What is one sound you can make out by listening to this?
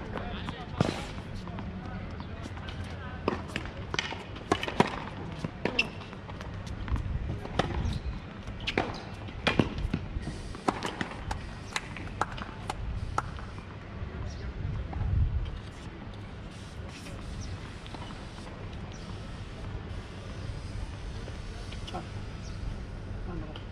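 Footsteps scuff and squeak on a hard court.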